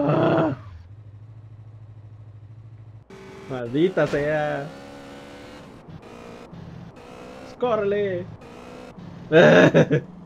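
A motorcycle engine hums and revs.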